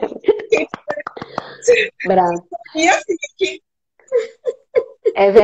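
Another middle-aged woman talks excitedly over an online call.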